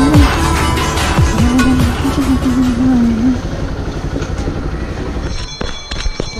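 A motorcycle engine idles and rumbles close by.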